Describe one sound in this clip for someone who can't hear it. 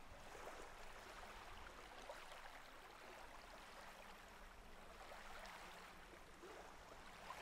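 Gentle waves wash up onto a sandy shore.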